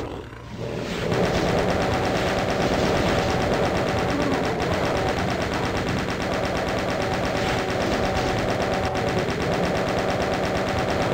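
A machine gun fires in a rapid, steady stream of shots.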